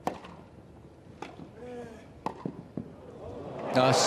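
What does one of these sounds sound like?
A tennis ball is struck sharply back and forth with rackets.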